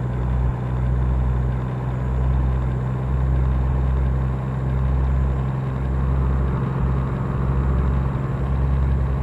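Tyres roll steadily on a paved road.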